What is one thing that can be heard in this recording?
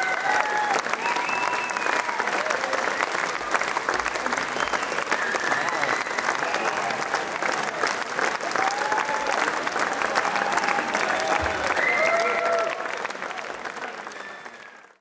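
A large crowd applauds, then fades away.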